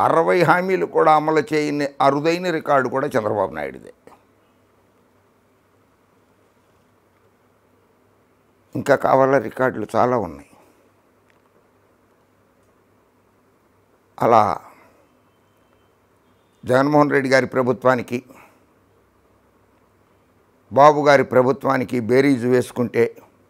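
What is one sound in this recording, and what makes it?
A middle-aged man speaks with animation into a close microphone, pausing between phrases.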